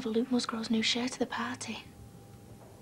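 A young woman speaks in a worried voice, close by.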